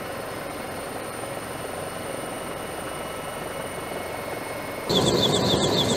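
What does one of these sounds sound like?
A helicopter engine hums steadily from inside a cockpit.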